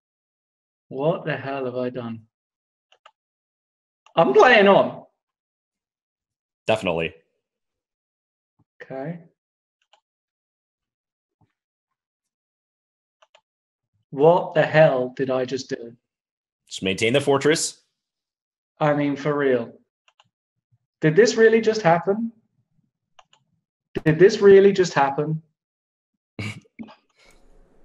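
A man talks with animation over a microphone, in short bursts between pauses.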